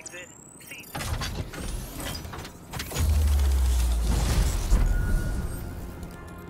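A radio tower powers up with a deep electronic boom.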